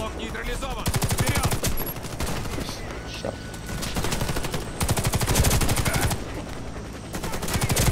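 A rifle fires rapid bursts close by.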